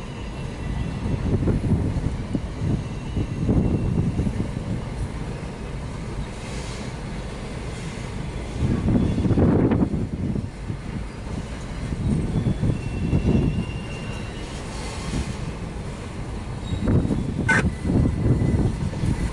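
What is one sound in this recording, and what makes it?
Train wheels clack over rail joints in bursts.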